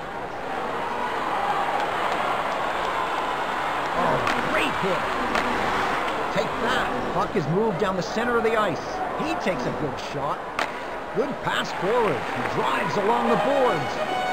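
Ice skates scrape and swish across ice.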